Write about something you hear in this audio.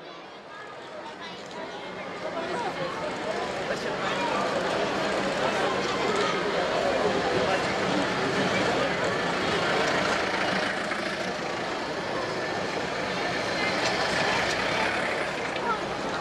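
Military vehicle engines rumble as they drive past slowly.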